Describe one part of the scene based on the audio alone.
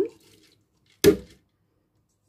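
A plastic jug is set down onto a counter with a knock.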